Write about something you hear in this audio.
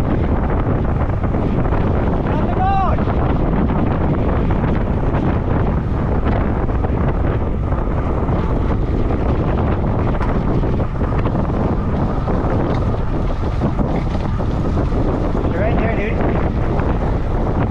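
Wind rushes loudly past the microphone while riding outdoors.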